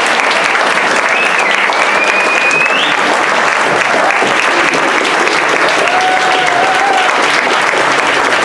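People cheer and whoop among the applause.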